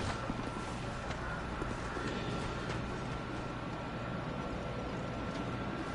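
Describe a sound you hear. Footsteps thud on grass and stone.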